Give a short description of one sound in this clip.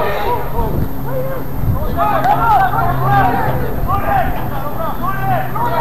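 Young men shout to each other from a distance outdoors.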